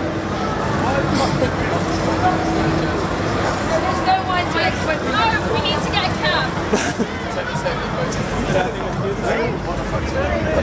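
Traffic hums in the street.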